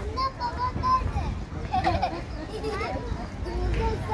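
A young child calls out nearby, outdoors.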